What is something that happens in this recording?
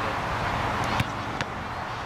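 A soccer ball thuds off a foot as it is kicked.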